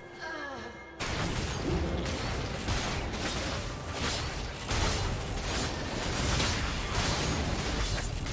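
Spell blasts and hits crackle and thud in a game fight.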